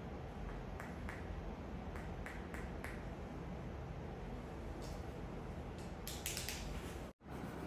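Small metal tools click and tap together close by.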